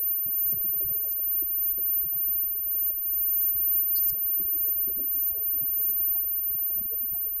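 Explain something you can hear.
A rock band plays loudly with electric guitars.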